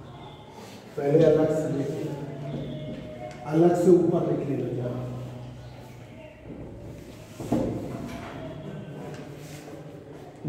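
A middle-aged man speaks calmly, as if teaching.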